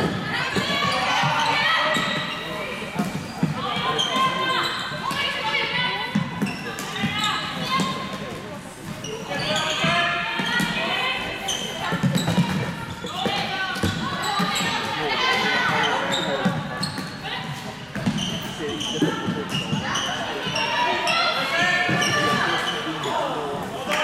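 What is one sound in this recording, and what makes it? Plastic sticks clack against a ball and each other.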